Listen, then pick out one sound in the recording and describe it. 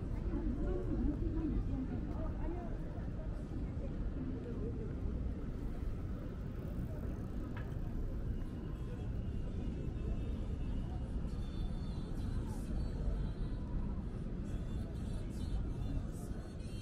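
Voices of passers-by murmur outdoors in a busy street.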